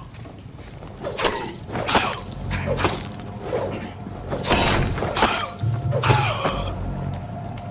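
Heavy blows land in a quick scuffle.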